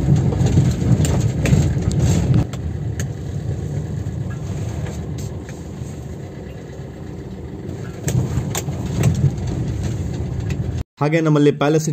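A car rattles and bumps over a rough road.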